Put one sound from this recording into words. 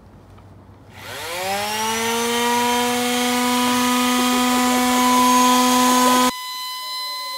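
A power drill whirs loudly and steadily.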